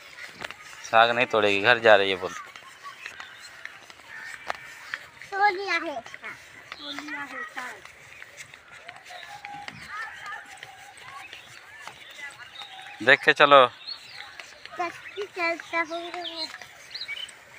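A woman talks with animation close by outdoors.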